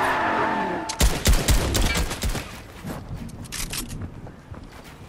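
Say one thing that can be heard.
Gunfire cracks in rapid bursts.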